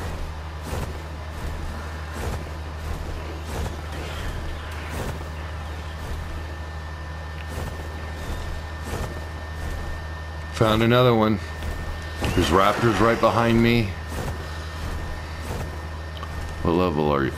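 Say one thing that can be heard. A large bird beats its wings in flight.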